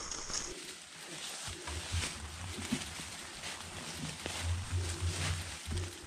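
Dry leaves rustle underfoot as bicycles are pushed uphill.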